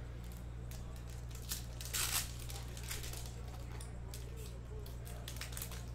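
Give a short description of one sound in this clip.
Foil card wrappers crinkle and rustle as hands tear them open.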